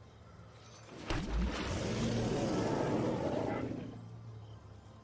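A magical whooshing sound effect swells and then fades.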